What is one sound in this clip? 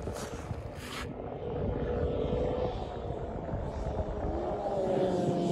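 A snowmobile engine hums in the distance.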